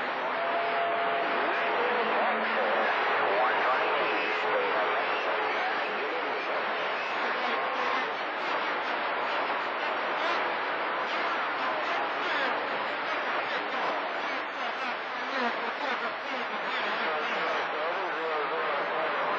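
Static hisses and crackles steadily from a radio receiver.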